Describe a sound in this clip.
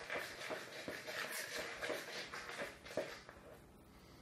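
A man squishes and kneads soft dough by hand.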